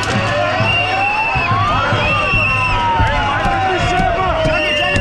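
A large outdoor crowd shouts and chants loudly.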